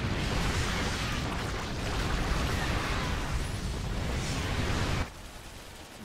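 Gunfire and explosions rumble and crackle in a loud battle.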